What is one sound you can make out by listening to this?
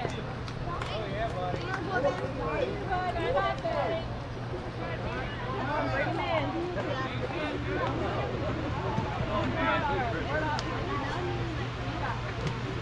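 Several people chatter and call out nearby, outdoors.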